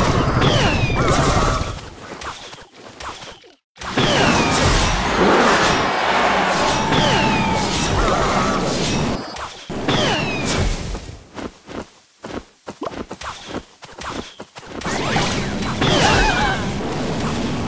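Fireballs burst with a crackling blast.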